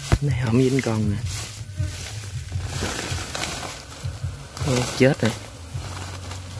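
Grass rustles as a hand pushes through it.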